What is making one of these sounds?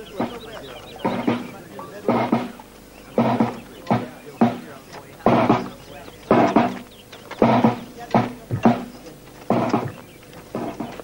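A snare drum beats a steady marching rhythm.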